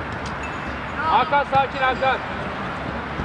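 Young men shout to each other across an open pitch outdoors.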